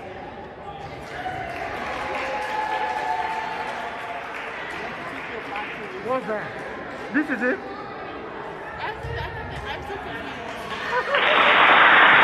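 Young girls shout and call out in a large echoing gym.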